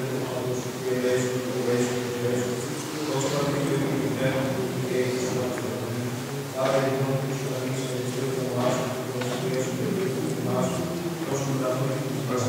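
A choir of men chants slowly together in a large echoing hall.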